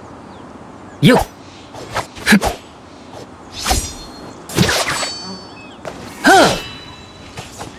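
A sword swishes and clangs in quick strokes.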